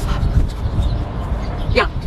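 A young woman speaks briefly close by.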